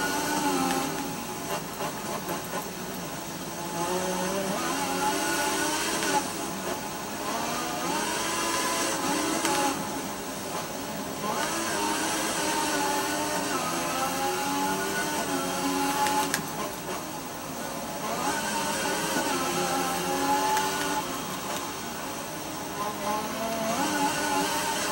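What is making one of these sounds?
A racing car engine whines and revs up and down through the gears.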